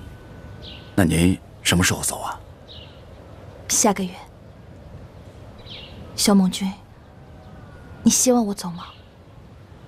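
A young woman speaks softly and hesitantly, close by.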